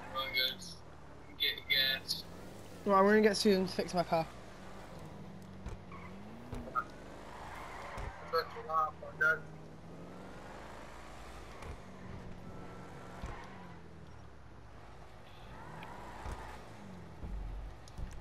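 A car engine hums steadily as a car drives along.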